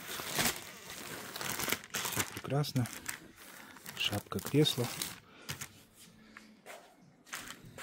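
Plastic wrap crinkles and rustles as hands handle it.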